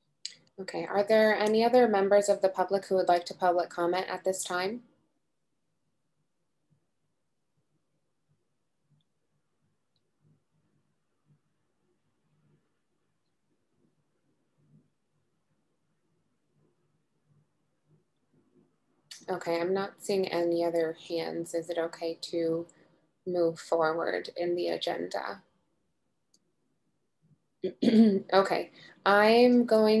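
A young woman speaks calmly over an online call, with pauses.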